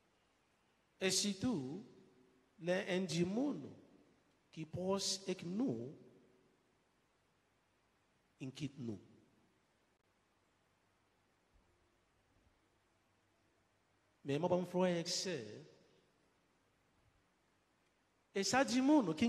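A middle-aged man speaks slowly and calmly into a microphone, with pauses, in a reverberant room.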